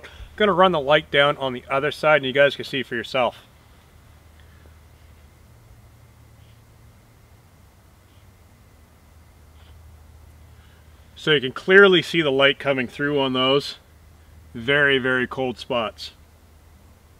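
A man speaks calmly and close up, in pauses.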